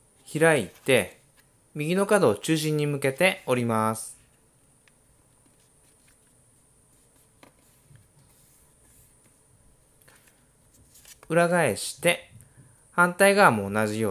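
Paper rustles and creases softly as it is folded.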